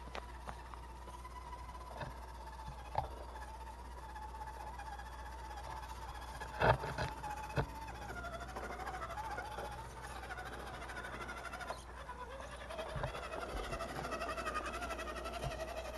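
A small electric motor whines, its pitch wavering as a toy truck drives.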